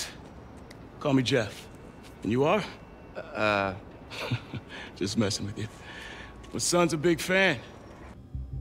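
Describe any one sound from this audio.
A middle-aged man speaks warmly and close.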